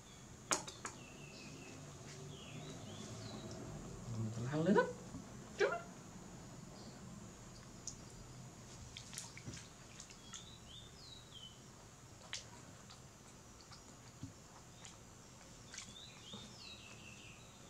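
A baby macaque gives high squeaks.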